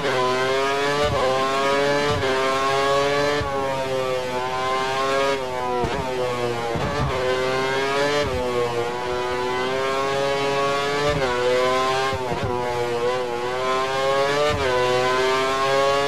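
A racing car engine screams at high revs, dropping briefly with each gear change.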